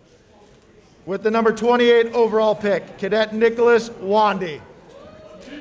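A man calls out loudly in long, drawn-out shouts.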